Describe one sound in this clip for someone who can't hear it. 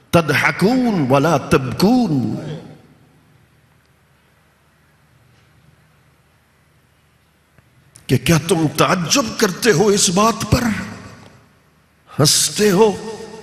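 An elderly man speaks into a microphone with feeling, in a melodic, reciting voice, heard through loudspeakers.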